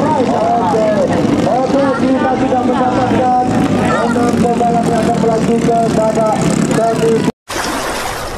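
A racing boat engine roars loudly across the water, its pitch rising and falling.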